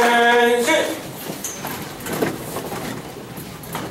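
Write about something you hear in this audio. A crowd shuffles to its feet.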